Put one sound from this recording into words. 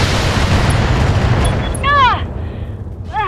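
A heavy blast rumbles and slowly fades.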